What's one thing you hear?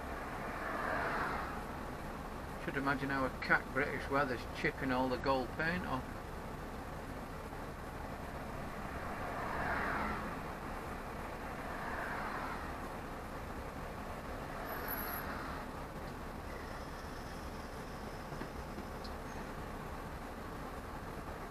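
A bus engine rumbles steadily underneath.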